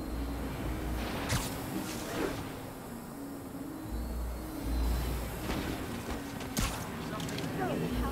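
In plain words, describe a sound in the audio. Air rushes past during a fast swinging fall.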